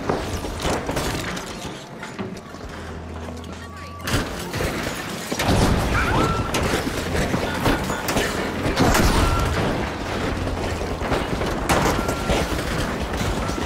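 Explosions boom and debris clatters.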